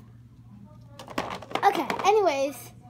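Small plastic toys clatter as a hand rummages through them.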